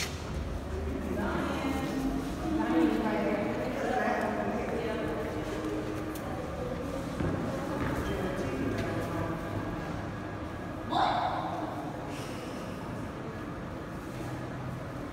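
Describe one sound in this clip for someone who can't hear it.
A crowd of young women chatter and call out in a large echoing hall.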